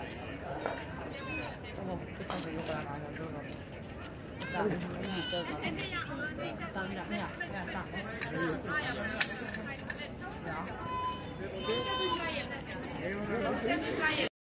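Several adults talk and call out nearby outdoors.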